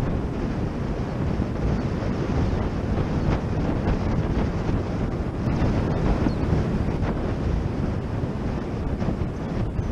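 Wind rushes loudly and steadily over the microphone outdoors.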